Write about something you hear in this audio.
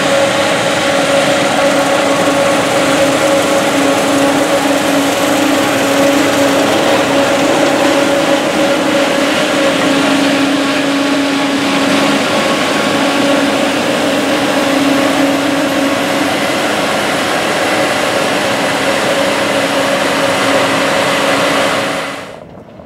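A combine harvester's header rattles and crunches through dry crop.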